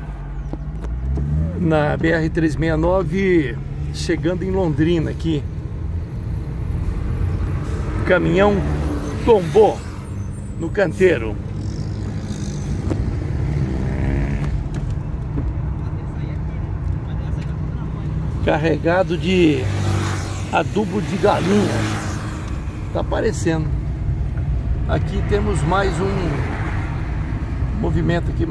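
A car engine hums with steady road noise from inside the car.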